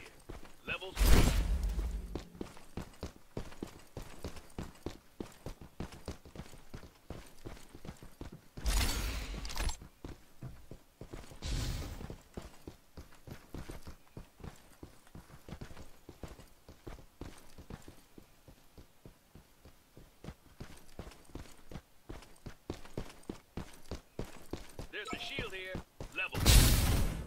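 Footsteps patter quickly over hard ground.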